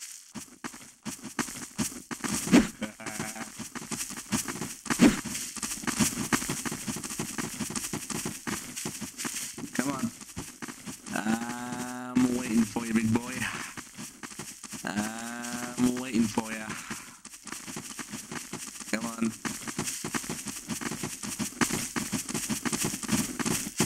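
Fists thud in punches.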